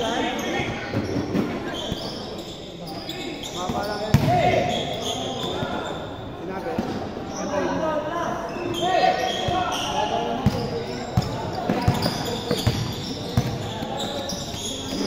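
A basketball bounces on a hard court in a large echoing hall.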